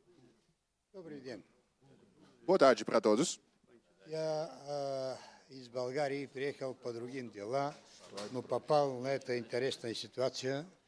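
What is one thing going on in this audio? An older man speaks calmly through a microphone.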